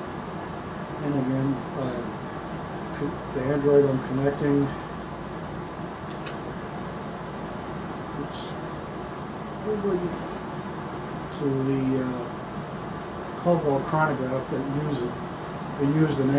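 An elderly man speaks calmly close to the microphone, in short bursts.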